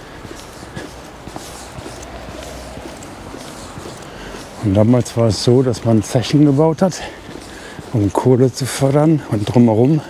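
Footsteps tap on a paved street outdoors.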